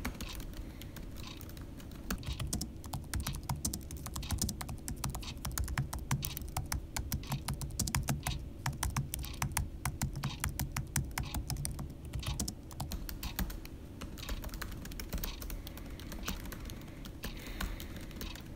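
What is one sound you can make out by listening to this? Keys click rapidly as someone types on a laptop keyboard.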